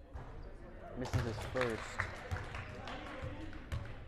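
A crowd in the stands cheers and shouts.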